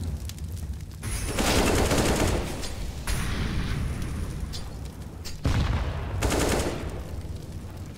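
A rifle fires several short bursts close by.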